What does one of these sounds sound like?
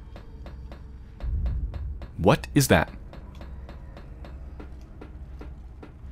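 Footsteps clang steadily on metal stairs.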